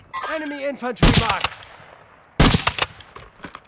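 A sniper rifle fires loud, sharp shots that echo.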